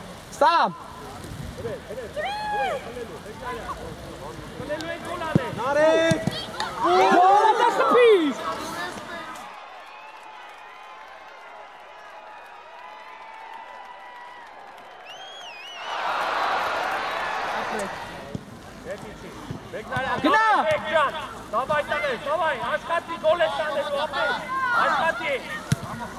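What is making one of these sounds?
Children shout and call out across an open outdoor pitch.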